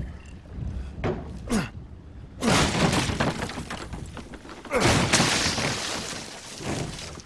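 A wooden crate is smashed apart with loud cracks and splintering.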